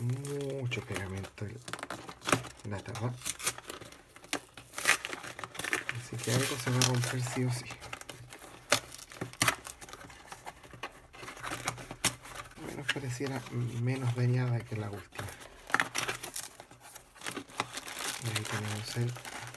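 Cardboard scrapes and rustles as a box is pulled open.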